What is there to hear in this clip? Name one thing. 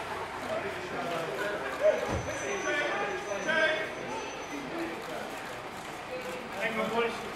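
Several men and women talk and call out nearby.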